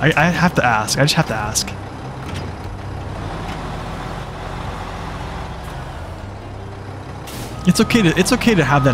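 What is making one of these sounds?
A heavy truck engine rumbles steadily.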